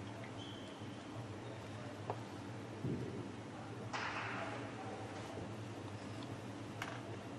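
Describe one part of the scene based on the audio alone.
Players' shoes squeak on a hard court in a large echoing hall.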